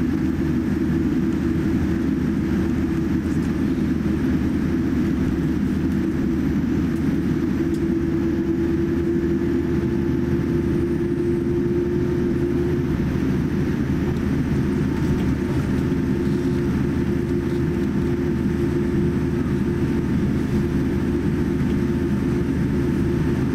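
Jet engines hum and roar steadily as an airliner taxis, heard from inside the cabin.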